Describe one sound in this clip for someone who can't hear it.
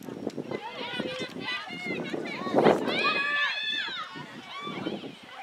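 Young women shout to each other across an open field outdoors.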